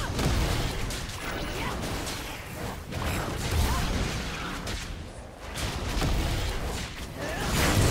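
Fantasy game creatures clash with magic blasts and impacts.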